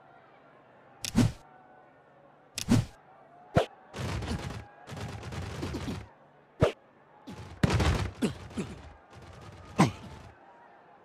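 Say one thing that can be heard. Football players collide with thuds.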